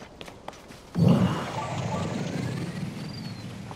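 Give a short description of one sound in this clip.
A heavy boulder rumbles and hums as it is lifted.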